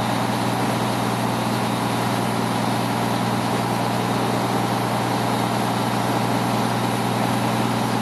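A hydraulic pump whines steadily as a dump bed rises.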